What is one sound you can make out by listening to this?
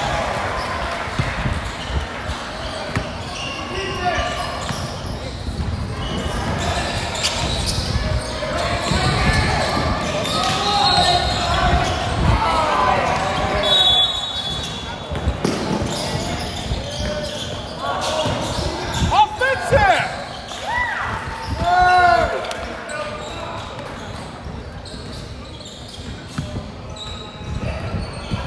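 Spectators and players call out in a large echoing hall.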